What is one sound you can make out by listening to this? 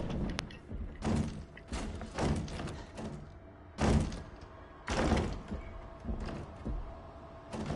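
Slow footsteps thud on a hard floor.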